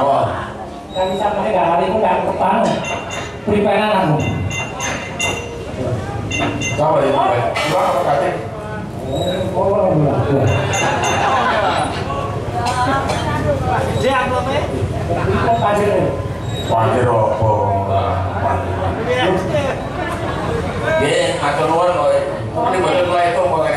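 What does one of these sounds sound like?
A woman sings loudly through a microphone over loudspeakers.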